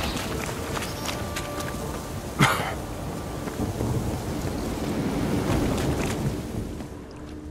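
Footsteps tread through grass and mud.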